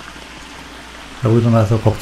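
Water rushes over rocks in a stream close by.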